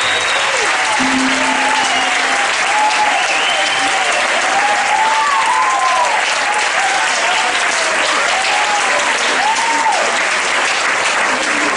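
Dancers stamp their feet on a wooden stage.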